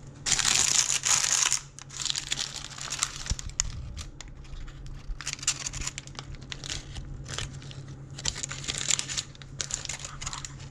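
Baking paper crinkles and rustles as hands unwrap it.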